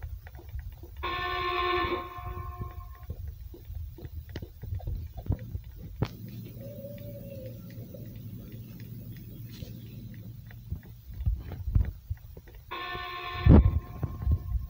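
A short electronic alert chime rings out.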